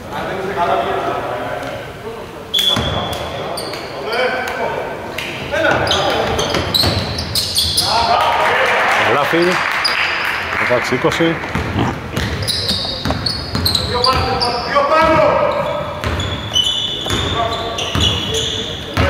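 Young men shout and call to each other across the hall.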